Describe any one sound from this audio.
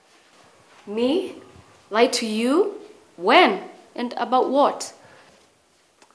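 A young woman speaks sharply, close by.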